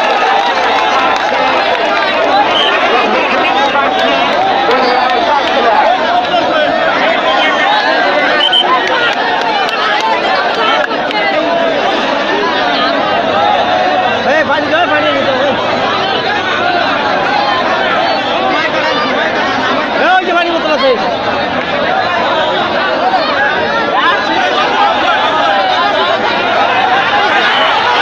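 A large outdoor crowd chatters and shouts loudly throughout.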